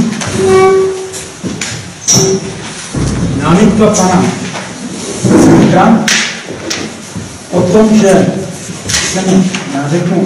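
A middle-aged man speaks calmly in a room with some echo.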